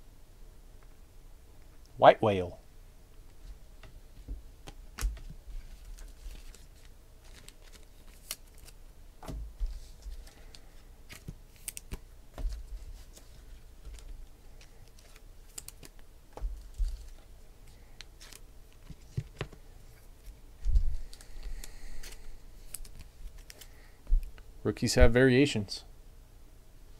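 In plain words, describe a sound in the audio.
Trading cards rustle and tap as hands handle them.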